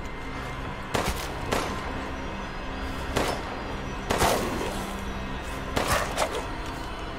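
Pistol shots ring out with echoes.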